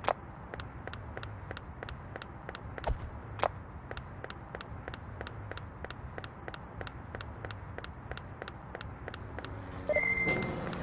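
Quick, even footsteps patter on a hard floor.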